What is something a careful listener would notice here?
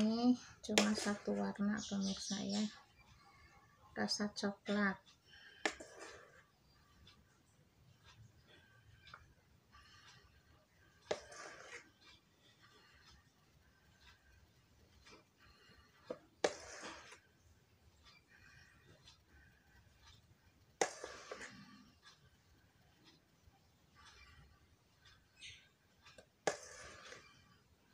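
A metal spoon scrapes and clinks against a metal bowl.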